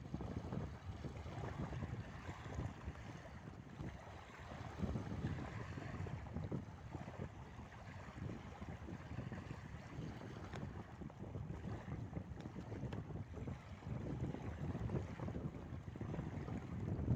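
Wind blows hard outdoors, buffeting the microphone.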